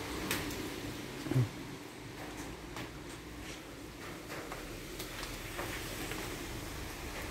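Water drips now and then onto leaves and pots outdoors.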